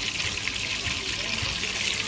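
Liquid pours into a bubbling pan.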